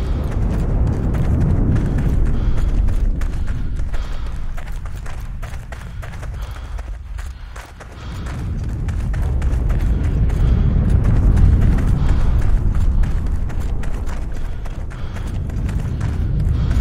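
Footsteps crunch over gravel and grass.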